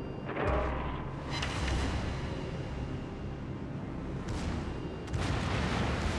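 Big guns fire with heavy booms.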